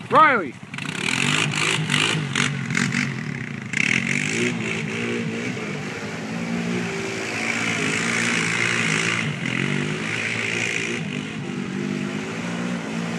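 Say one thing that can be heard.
A quad bike engine revs and drones as it drives across a field.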